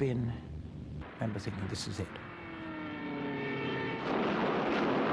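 A diving plane's engine whines, falling in pitch.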